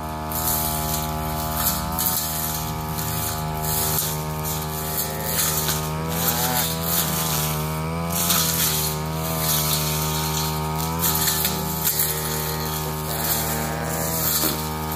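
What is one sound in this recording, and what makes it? A petrol brush cutter engine drones steadily close by, its pitch rising and falling.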